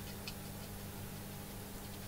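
Fine grains patter softly onto a plastic tray.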